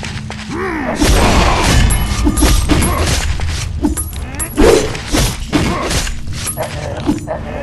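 Monsters grunt and shriek as they are struck.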